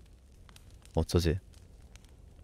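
A young man says a short phrase through a microphone.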